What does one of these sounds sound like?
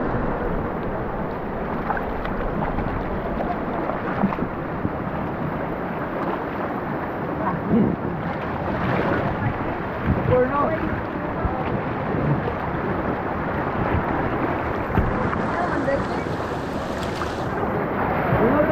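A river rushes and splashes steadily over rocks close by.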